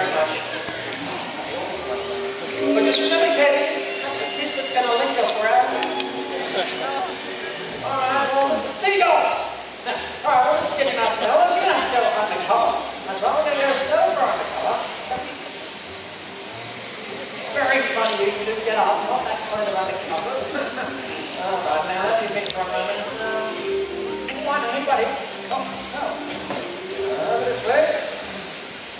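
A man talks with animation through a loudspeaker, outdoors.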